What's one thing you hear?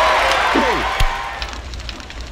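A short cheerful game jingle plays.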